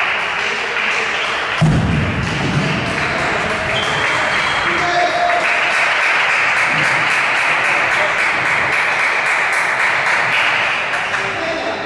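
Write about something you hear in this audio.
Footsteps shuffle across a hard floor in a large echoing hall.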